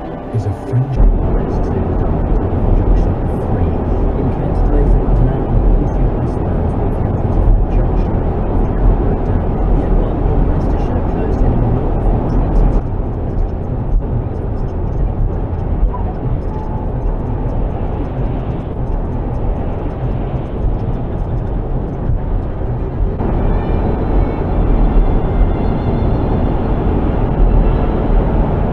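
Tyres roar steadily on a fast road, heard from inside a moving car.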